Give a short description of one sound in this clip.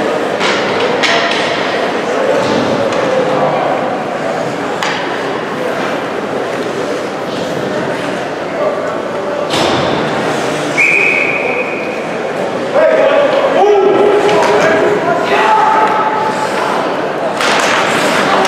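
Hockey sticks clack against a puck.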